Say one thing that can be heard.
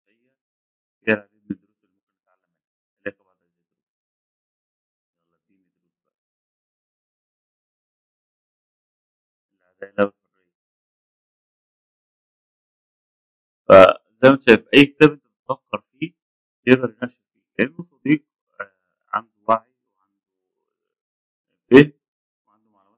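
A man speaks calmly and close to a microphone, in short bursts with long pauses.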